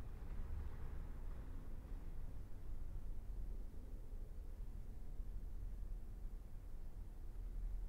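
A cello plays soft, low sustained notes in an echoing room.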